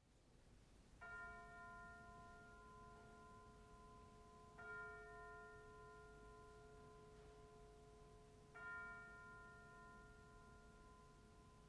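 A pipe organ plays sustained chords that swell in three times.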